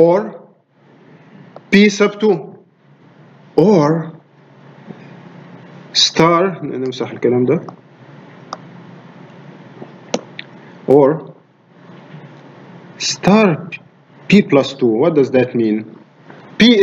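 A man lectures calmly into a close microphone, with pauses.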